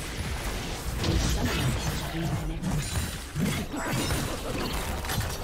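Blows clash and thud in quick succession.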